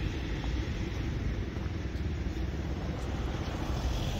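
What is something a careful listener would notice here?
A motorbike engine hums as it rides past.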